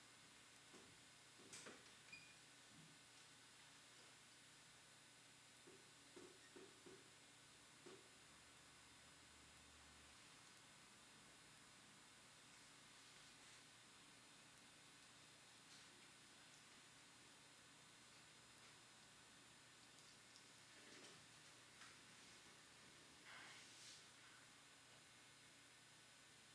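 Small handheld objects faintly click and rustle close to a microphone.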